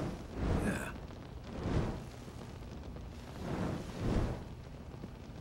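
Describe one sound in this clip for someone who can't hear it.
A weapon roars and whooshes in repeated bursts.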